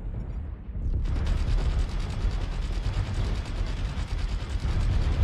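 A weapon fires in a loud, continuous roaring burst.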